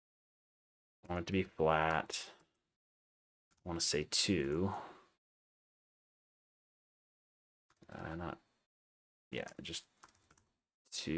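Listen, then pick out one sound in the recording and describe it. A young man speaks calmly into a close microphone, in short phrases with pauses.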